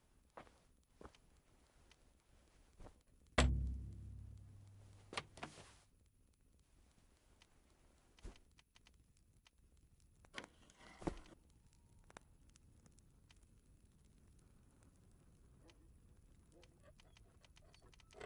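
A metal lock clicks and scrapes as it is picked.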